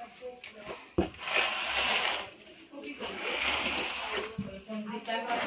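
A cardboard box rustles and thumps as a child shifts inside it.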